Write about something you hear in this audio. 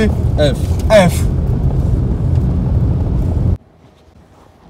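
A car engine rumbles steadily, then cuts off suddenly.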